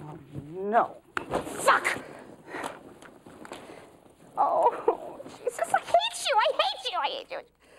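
A woman cries out with strong emotion, close by.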